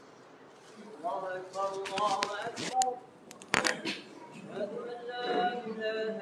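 A middle-aged man chants in a melodic voice into a close microphone, in a room with some echo.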